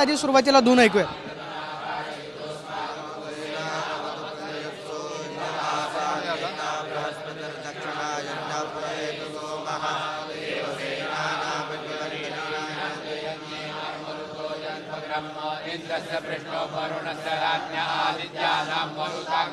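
A group of men chant together in a steady murmur.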